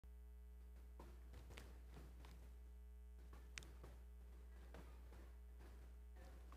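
Paper pages rustle.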